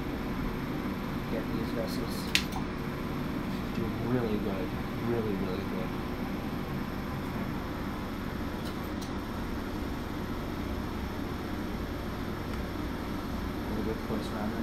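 A handheld device hums steadily.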